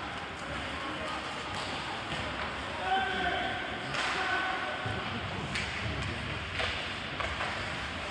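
Hockey sticks clack sharply against the puck and the ice.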